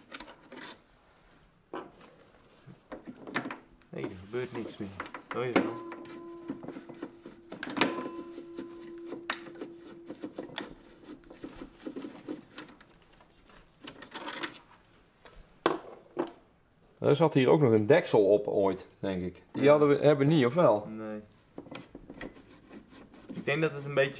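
Metal parts click and tap as a screwdriver works on a device.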